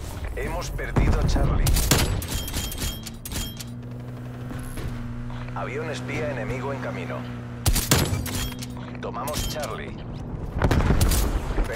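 A sniper rifle fires single loud shots.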